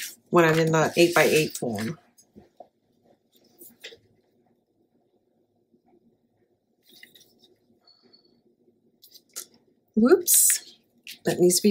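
Paper rustles and slides on a table.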